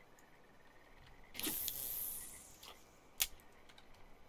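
A fishing reel clicks as its line is wound in.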